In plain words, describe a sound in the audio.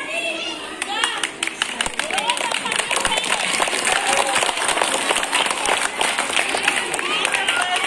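People clap their hands in quick bursts.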